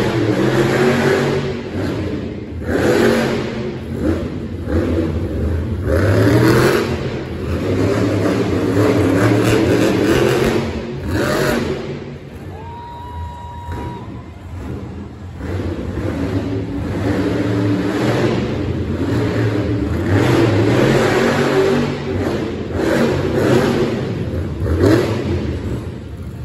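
A monster truck engine roars and revs loudly in a large echoing arena.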